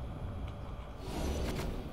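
A fiery burst whooshes loudly.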